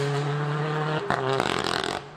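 A rally car's engine briefly cuts out during a gear change.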